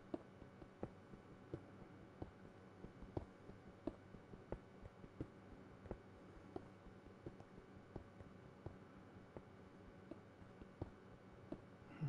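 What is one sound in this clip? A pickaxe chips at stone blocks in quick, regular taps.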